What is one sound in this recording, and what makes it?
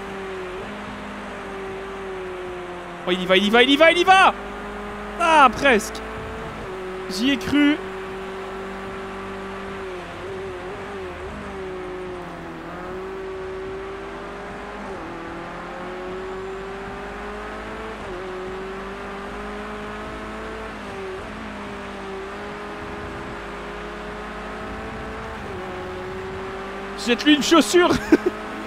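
A racing car engine drones steadily, rising and falling as the car speeds up and slows.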